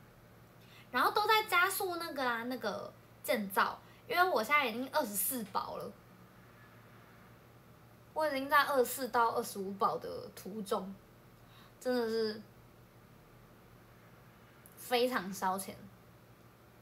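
A young woman talks close to the microphone in short, lively bursts.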